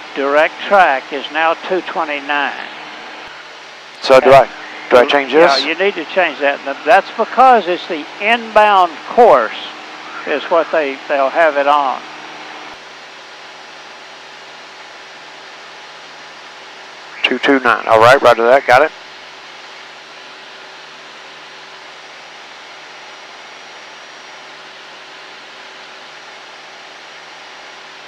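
An airplane engine drones steadily.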